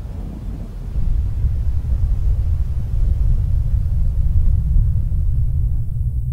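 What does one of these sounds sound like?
Footsteps rustle quickly through dry grass.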